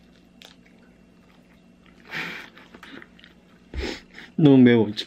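A young man chews food.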